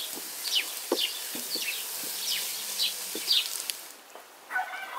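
Chopped greens sizzle in a hot pan.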